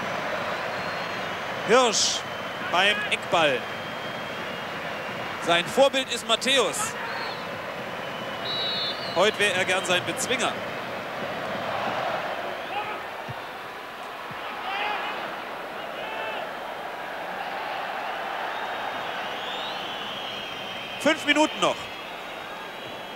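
A large crowd murmurs and cheers across an open stadium.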